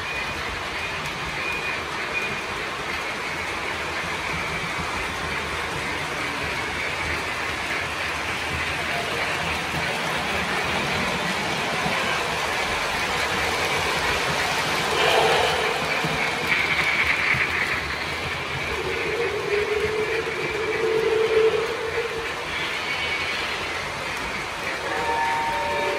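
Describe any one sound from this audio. A model train rumbles and clatters along its tracks, growing louder as it passes close by.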